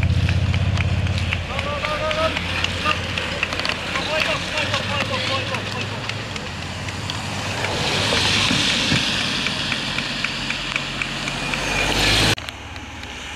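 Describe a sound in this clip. Bicycle tyres hiss on a wet road.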